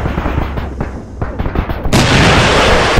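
A heavy cannon fires in rapid bursts.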